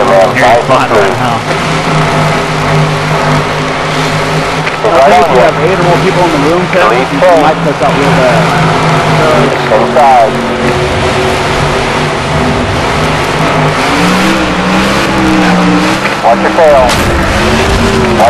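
Racing car engines roar steadily at high speed.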